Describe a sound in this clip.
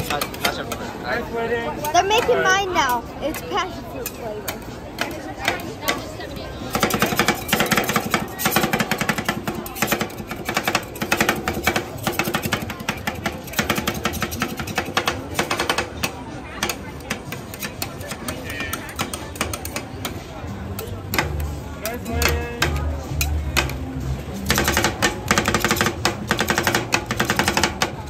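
Metal spatulas scrape and tap rapidly on a metal plate.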